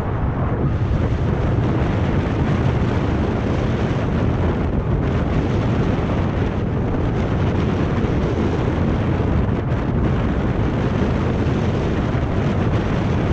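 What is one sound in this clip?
Wind rushes loudly past a bicycle rider outdoors.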